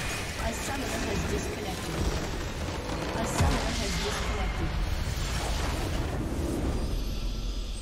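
Magical blasts crash and whoosh loudly.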